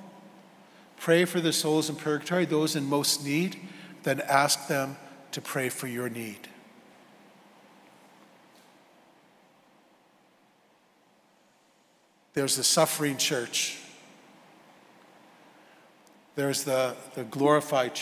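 A middle-aged man speaks calmly through a microphone, with pauses, in an echoing hall.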